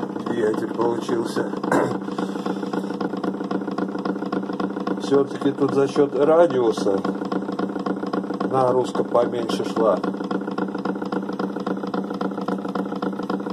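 A turntable motor hums steadily as the platter spins.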